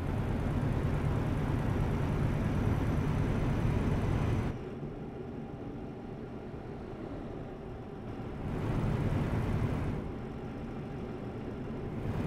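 Tyres roll on the road with a steady rushing noise.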